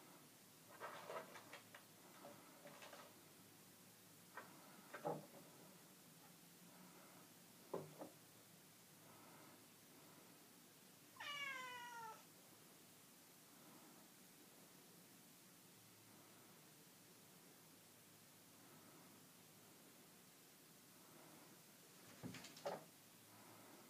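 A cat's paws scrabble and thump onto a wooden stand.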